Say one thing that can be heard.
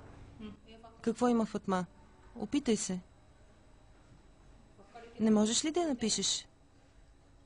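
A young girl reads aloud clearly, close by.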